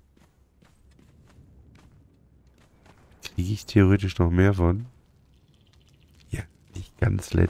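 Footsteps tap softly.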